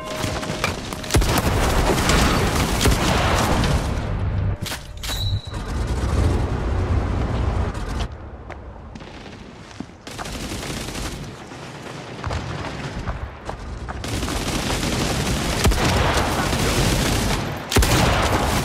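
A submachine gun fires rapid bursts.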